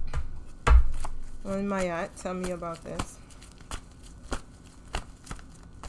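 Playing cards riffle and tap as they are shuffled.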